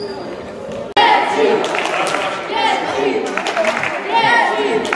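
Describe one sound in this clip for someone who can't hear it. Children and adults call out in an echoing hall.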